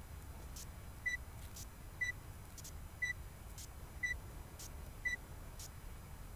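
A game countdown timer beeps once a second.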